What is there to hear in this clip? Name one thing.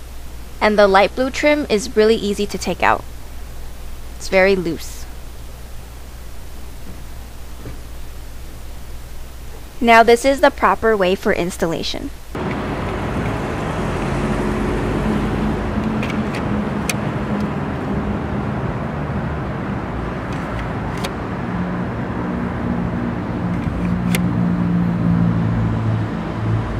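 Plastic strips snap into a car's grille with sharp clicks.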